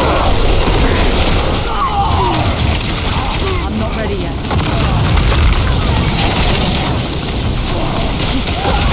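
Spells crackle and blast as game combat rages.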